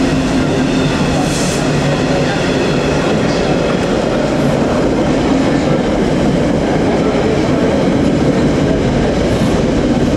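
Freight wagons clatter and rumble over the rail joints.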